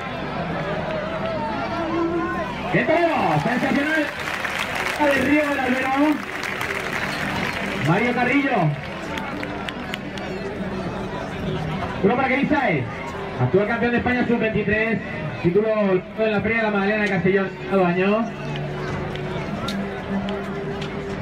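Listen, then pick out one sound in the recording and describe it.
A large crowd murmurs outdoors.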